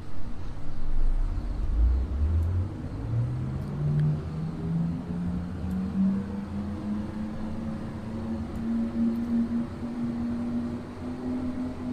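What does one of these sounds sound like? An electric train's motor whines, rising steadily in pitch as the train pulls away.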